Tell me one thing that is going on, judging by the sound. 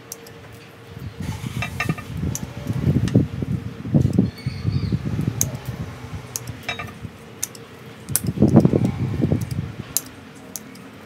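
Leaves rustle as branches are handled close by.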